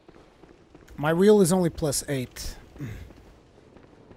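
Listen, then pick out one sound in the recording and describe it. A man talks loudly into a close microphone.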